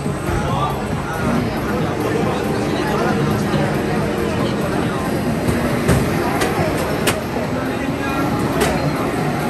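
Racing game engines roar loudly from arcade machines.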